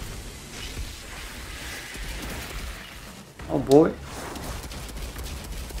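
Magic blasts crackle from a video game.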